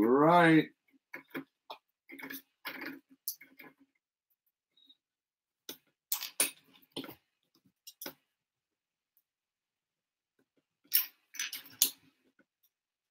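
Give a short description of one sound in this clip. Plastic toy bricks click and rattle on a table.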